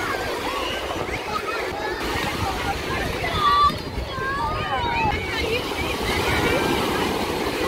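Feet splash in shallow water.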